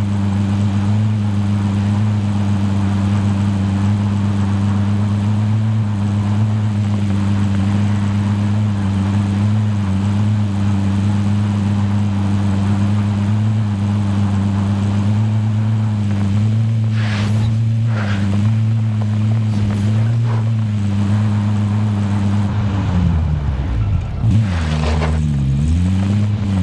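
Tyres rumble over a road and grass.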